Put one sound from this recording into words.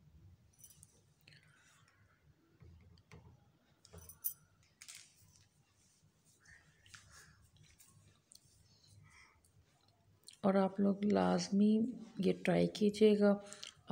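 Hands squish and knead soft dough in a bowl.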